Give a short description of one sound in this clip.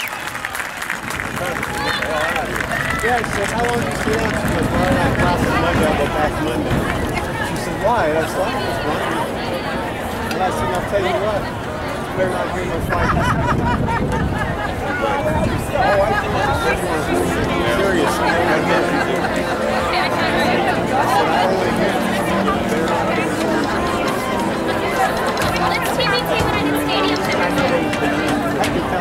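A marching band plays brass and woodwinds outdoors.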